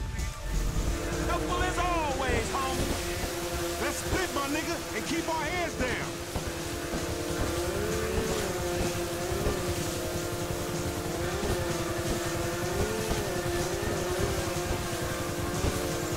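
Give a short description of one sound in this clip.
A jet ski engine drones steadily, rising and falling in pitch.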